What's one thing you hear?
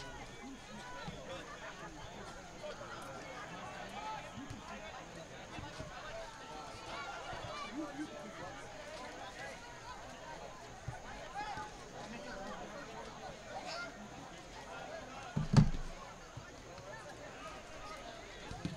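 A crowd of spectators chatters and calls out across an open field outdoors.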